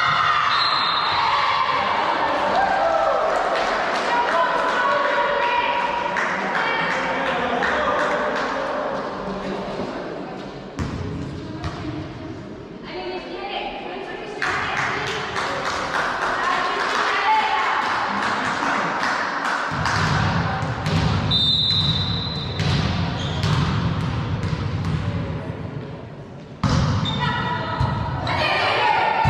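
Young women shout and call out to each other in a large echoing hall.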